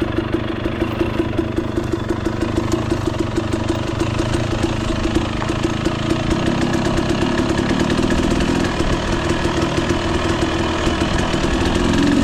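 A dirt bike engine putters and revs steadily up close.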